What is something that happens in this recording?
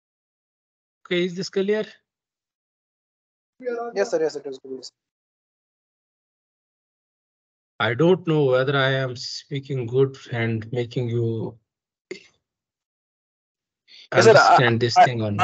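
A young man speaks calmly over an online call, explaining in short bursts.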